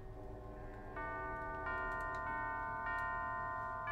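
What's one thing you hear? Bell-like musical notes play in a steady tune.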